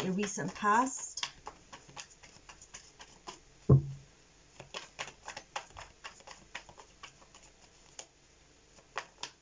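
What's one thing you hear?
Paper crinkles and rustles in a young woman's hands.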